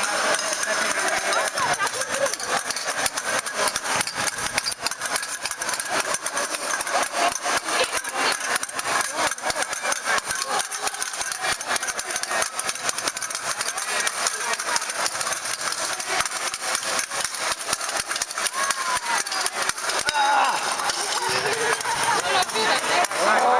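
Fencing blades clash and click rapidly.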